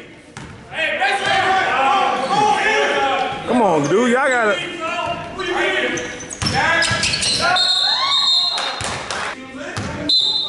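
A woman shouts and cheers loudly close by in a large echoing hall.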